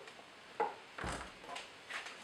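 A heavy machine thuds as it is set down on a table.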